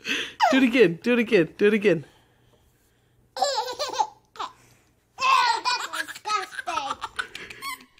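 A toddler laughs loudly.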